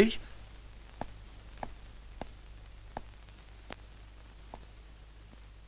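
Footsteps walk slowly away across a hard floor.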